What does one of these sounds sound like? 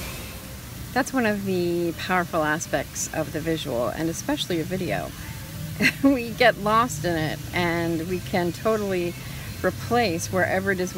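A middle-aged woman talks close up, in a relaxed, chatty way.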